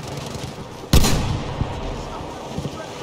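A shell explodes with a heavy boom.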